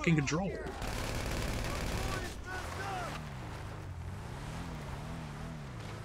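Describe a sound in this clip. Tyres skid on a dirt road.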